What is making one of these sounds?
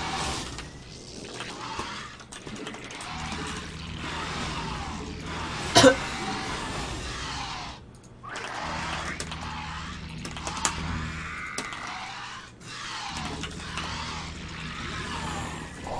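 Video game combat sounds clatter and whoosh.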